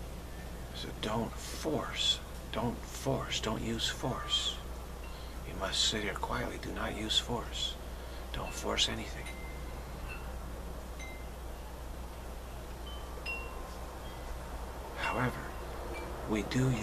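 A middle-aged man speaks calmly and close to the microphone, with pauses.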